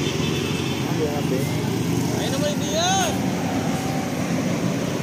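A bus horn sounds with a wavering, musical tune.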